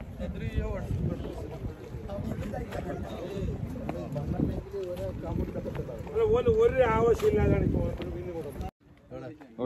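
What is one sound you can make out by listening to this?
Men talk loudly close by, outdoors.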